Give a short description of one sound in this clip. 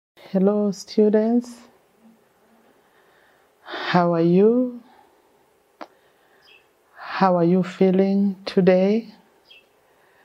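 A middle-aged woman speaks calmly and clearly into a close microphone, in short phrases with pauses.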